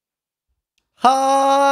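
A young man speaks loudly and close into a microphone.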